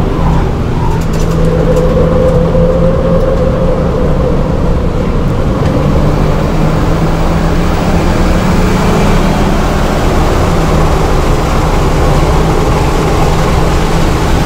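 Wind rushes past a car, growing louder as it speeds up.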